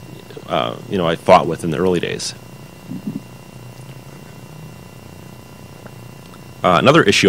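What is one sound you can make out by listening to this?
A man speaks into a microphone over loudspeakers in a large room, pausing between phrases.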